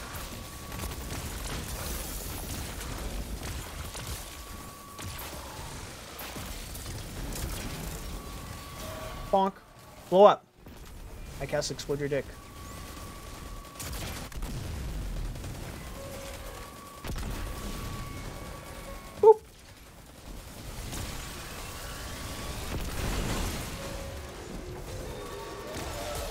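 Gunfire and blasts from a game crackle throughout.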